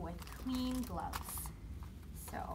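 A plastic wrapper crinkles.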